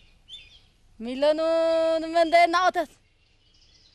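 A woman sings a long, held note.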